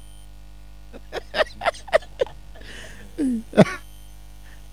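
A young man laughs into a close microphone.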